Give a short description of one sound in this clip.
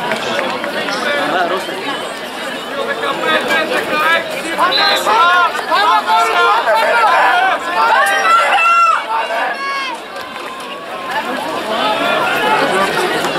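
Spectators shout and cheer encouragement nearby, outdoors.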